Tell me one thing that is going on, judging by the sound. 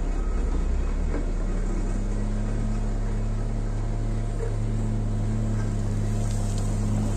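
A loader's diesel engine rumbles steadily close by.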